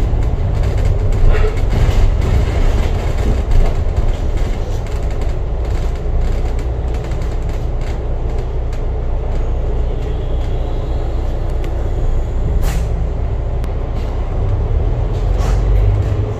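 A bus engine rumbles steadily from close by.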